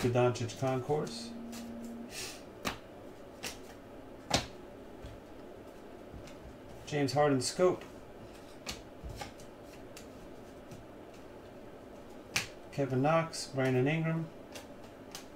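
Trading cards click and slide against each other as they are flipped through.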